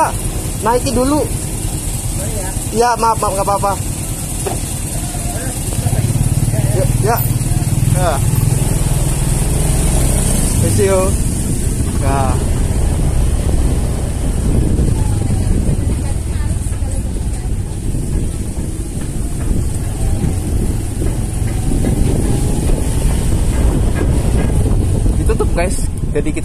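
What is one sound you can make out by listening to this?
A motorcycle engine rumbles steadily nearby.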